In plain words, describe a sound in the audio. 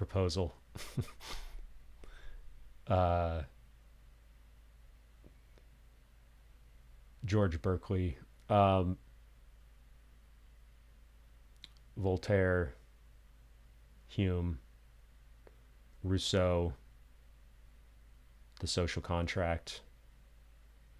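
A young man speaks close to a microphone with pauses between phrases.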